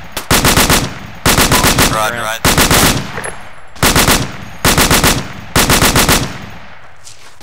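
A rifle fires in rapid bursts, close by.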